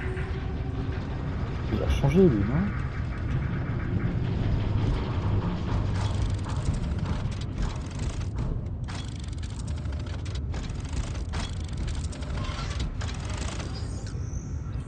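A deep mechanical hum drones steadily.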